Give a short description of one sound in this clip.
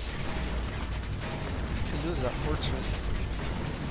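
Machine guns fire rapid bursts of shots.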